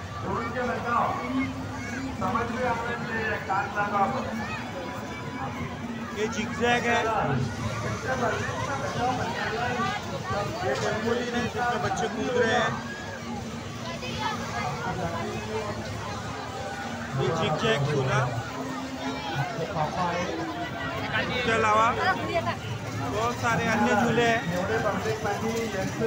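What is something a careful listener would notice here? A crowd of men, women and children chatters and calls out all around.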